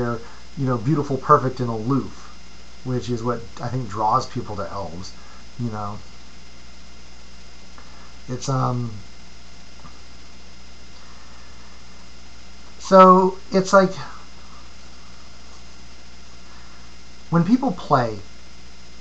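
A middle-aged man talks calmly and close to the microphone, in short bursts with pauses.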